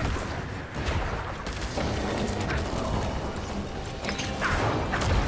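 Game spells crackle and whoosh in quick bursts.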